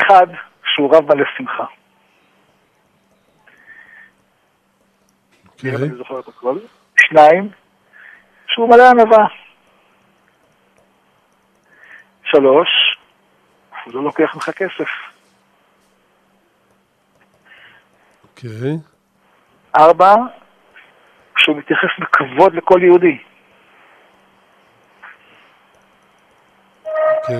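An elderly man speaks warmly and calmly close by, in short bursts with pauses.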